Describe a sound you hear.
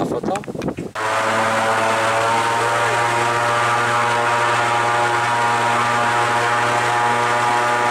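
An airboat engine roars loudly and steadily.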